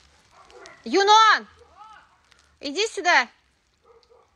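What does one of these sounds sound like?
A dog whines and howls loudly close by.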